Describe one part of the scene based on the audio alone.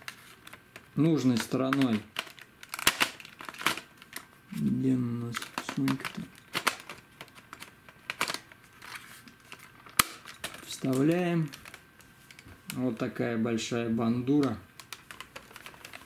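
A plastic battery clicks and scrapes as it is slid off and onto a camcorder, close by.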